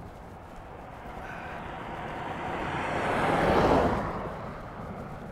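A car approaches at speed and rushes past close by.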